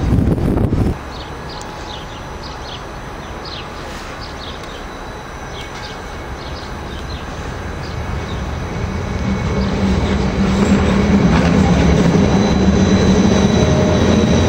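A train rolls in, its rumble growing louder as it draws near.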